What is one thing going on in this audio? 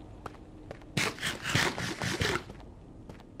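A crunchy chewing sound plays in quick bursts.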